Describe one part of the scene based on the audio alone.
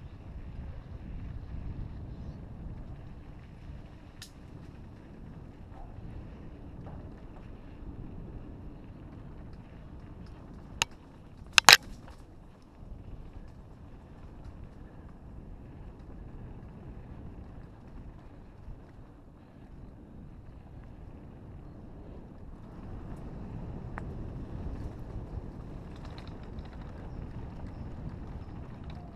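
Wind rumbles past outdoors.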